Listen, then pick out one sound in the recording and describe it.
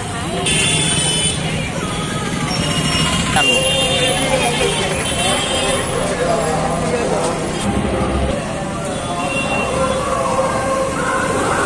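Traffic engines rumble along a busy street.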